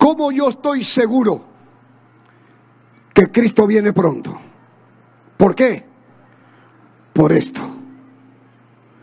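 A man preaches into a microphone in bursts, heard through loudspeakers in an echoing hall.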